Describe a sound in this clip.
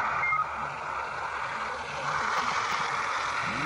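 A truck engine idles with a steady hum.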